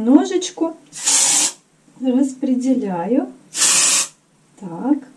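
A hairspray can hisses in short bursts.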